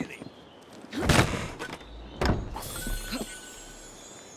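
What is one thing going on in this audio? Wooden planks clatter and knock underfoot.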